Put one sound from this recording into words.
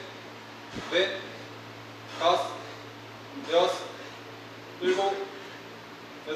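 A man grunts with effort at each pull-up, close by.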